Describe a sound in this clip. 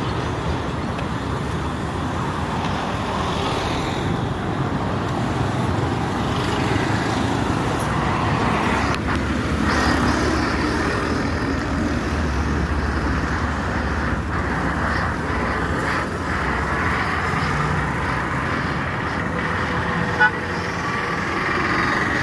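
Traffic rumbles steadily past on a busy road nearby.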